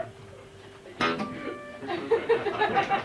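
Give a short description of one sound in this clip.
An acoustic guitar strums briefly.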